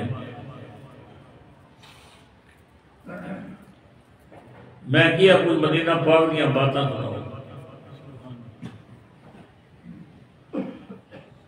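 An elderly man sings into a microphone close by, in bursts with pauses.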